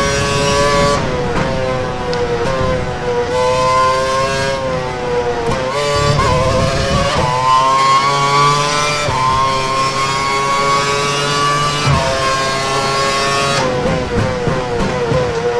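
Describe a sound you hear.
A racing car engine drops in pitch as the car brakes for corners.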